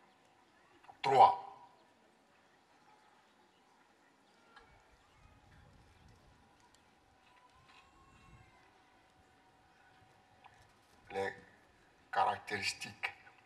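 A man speaks loudly into a microphone over loudspeakers.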